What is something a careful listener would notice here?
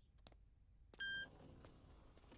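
An elevator chime dings once.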